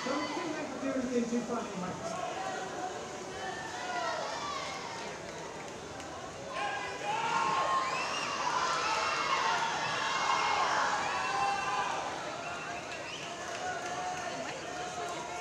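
Swimmers splash through the water.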